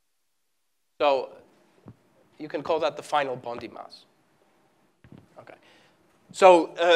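An elderly man speaks in a lecturing tone.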